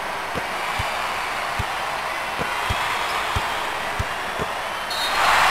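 A basketball bounces repeatedly on a wooden court.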